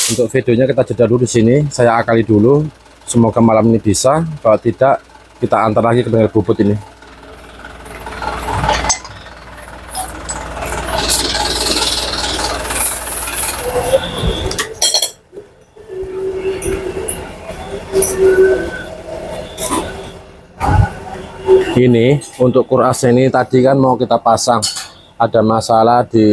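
Metal engine parts clink and knock together.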